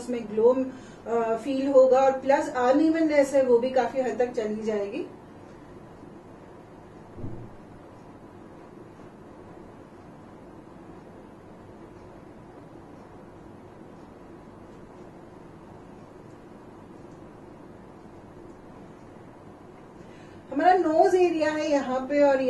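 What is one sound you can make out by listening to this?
A woman speaks calmly and clearly into a close microphone.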